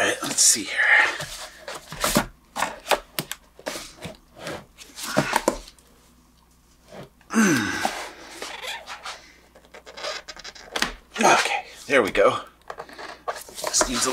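Hands tap and knock on a hollow plastic container.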